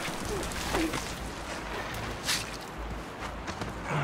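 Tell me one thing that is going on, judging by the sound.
A man grunts up close.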